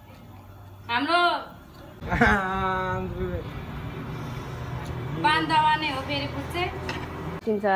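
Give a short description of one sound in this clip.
A man slurps noodles noisily.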